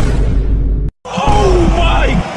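A man gasps in shock.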